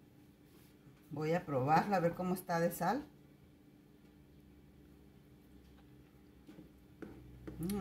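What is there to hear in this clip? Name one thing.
A ladle stirs liquid in a saucepan.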